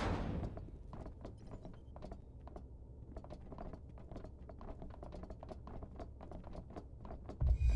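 Boots tap in quick, steady steps on a metal floor.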